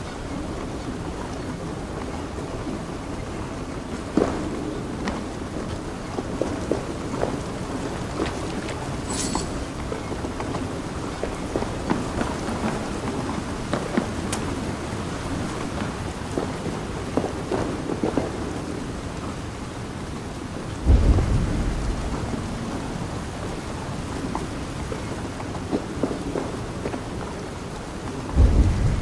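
Footsteps tread on wooden boards and stone at a steady walking pace.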